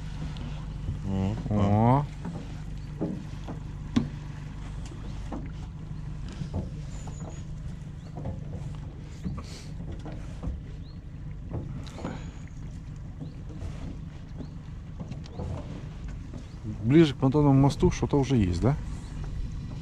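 A man speaks briefly and calmly nearby.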